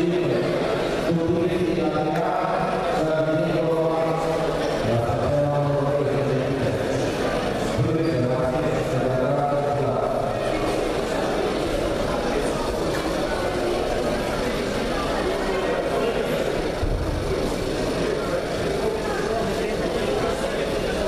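A large crowd chatters and murmurs in an echoing hall.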